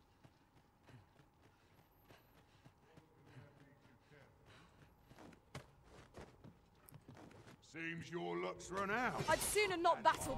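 Footsteps tread on stone and wooden boards.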